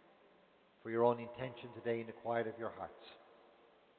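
An elderly man speaks slowly into a microphone in a large echoing hall.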